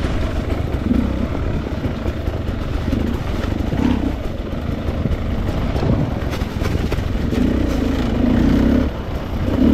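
Tyres crunch over dry leaves and snow.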